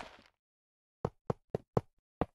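Short hard clicks sound as rails are set down.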